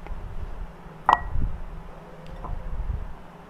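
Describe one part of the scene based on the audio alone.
A spatula scrapes and knocks against a glass bowl.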